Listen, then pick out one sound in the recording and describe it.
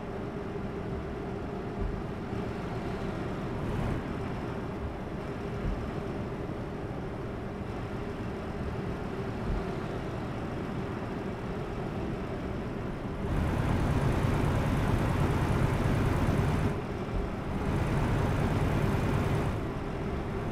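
A heavy diesel truck engine drones while cruising on a highway, heard from inside the cab.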